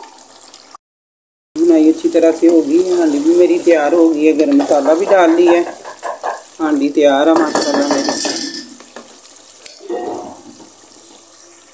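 A wooden spoon stirs and scrapes inside a metal pot.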